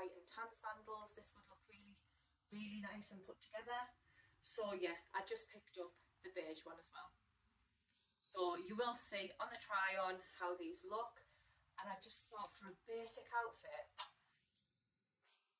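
A woman talks to the listener with animation, close by.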